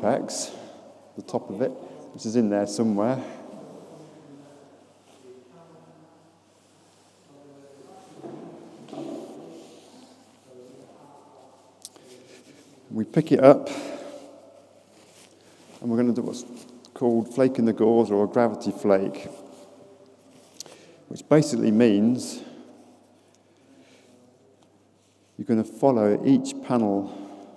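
A man speaks calmly to a group, heard close by in an echoing hall.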